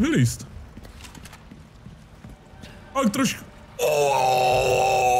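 Footsteps crunch slowly on rough ground.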